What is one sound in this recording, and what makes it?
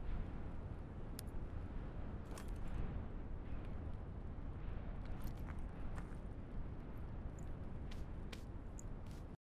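A fire crackles and pops beneath a low, steady rumble.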